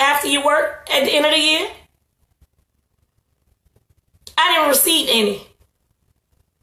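A young woman talks on a phone, speaking close and in short bursts.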